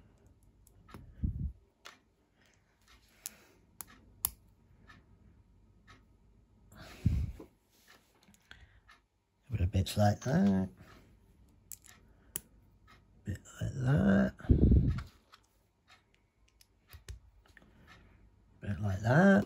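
Small plastic pieces click and rattle as they are handled.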